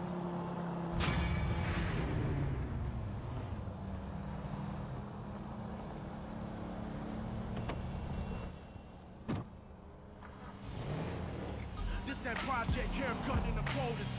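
A car engine idles and revs.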